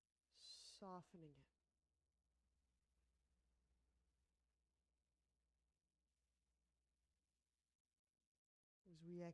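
A young woman speaks calmly and softly, close by.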